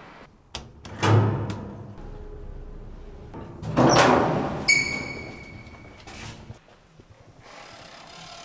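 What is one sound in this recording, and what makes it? Heavy elevator doors slide and clunk.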